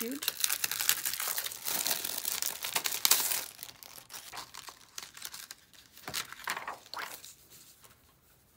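A plastic sheet crinkles and rustles as hands handle it.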